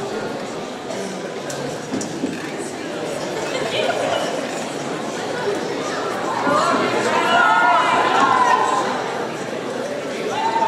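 A large crowd of young people chatters and cheers in a large echoing hall.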